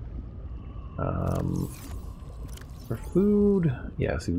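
A soft electronic chime sounds.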